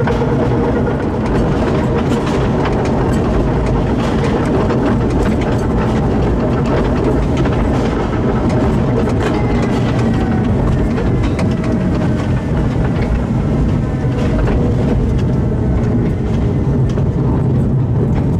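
Wheels click and clatter over rail joints.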